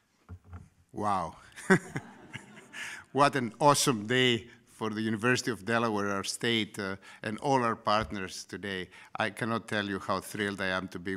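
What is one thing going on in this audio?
A man speaks calmly through a microphone and loudspeakers in a large hall.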